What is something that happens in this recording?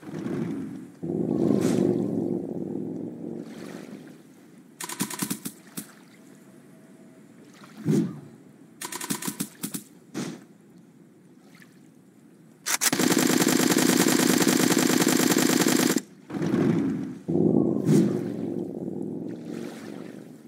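A big blast rumbles.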